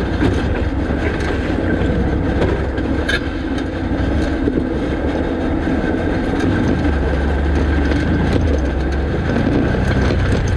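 Tyres crunch over loose rocks.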